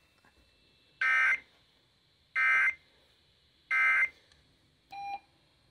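A laptop gives a series of loud electronic beeps.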